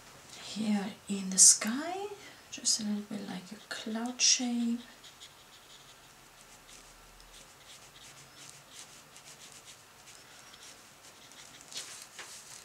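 A paintbrush dabs on watercolor paper.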